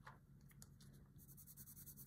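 A coloured pencil scratches softly across paper.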